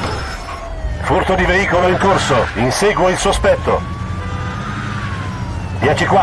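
Tyres screech on the road.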